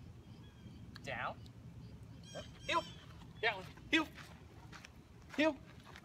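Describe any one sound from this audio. A man speaks in short commands to a dog.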